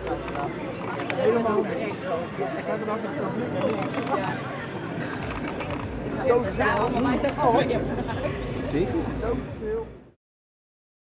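Several adult men and women chat nearby outdoors.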